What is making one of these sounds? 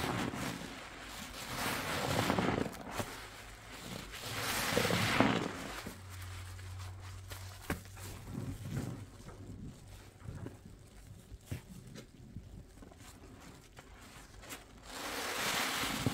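A wet sponge squelches as it is squeezed in thick foam.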